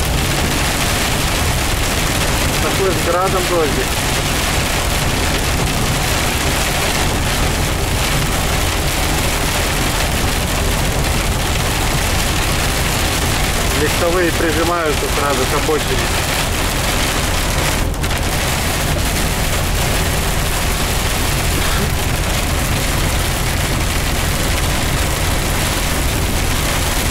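Rain patters on the windscreen and road.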